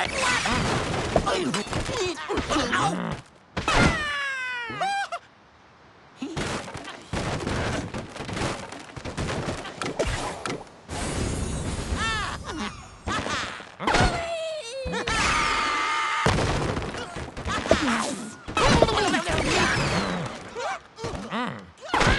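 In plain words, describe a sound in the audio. Wooden blocks clatter and crash as a structure collapses.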